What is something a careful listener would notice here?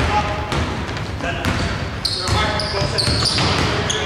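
A basketball bounces on a hard wooden floor in a large echoing hall.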